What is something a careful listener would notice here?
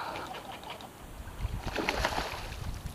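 An arrow splashes into water.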